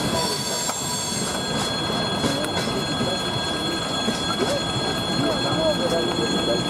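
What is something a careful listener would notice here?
A freight train rumbles past loudly on the tracks.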